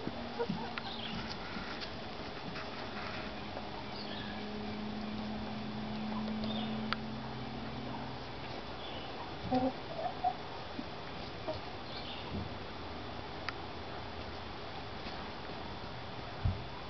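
Hens cluck softly and murmur close by.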